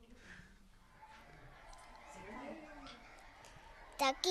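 A young girl speaks softly into a microphone.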